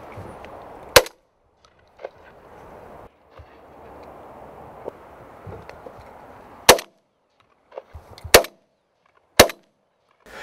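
A shotgun fires with loud bangs.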